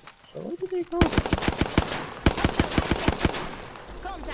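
Rapid gunfire rattles in a fast burst.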